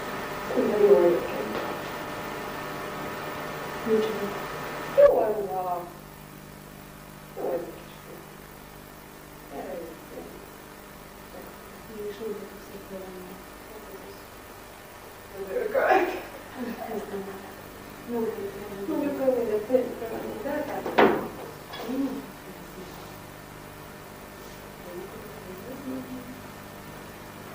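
Two women talk quietly with each other.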